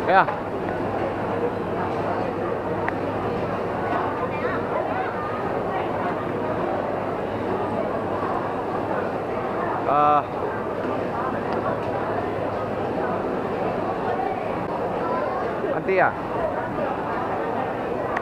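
A crowd chatters steadily, with voices echoing around a large hall.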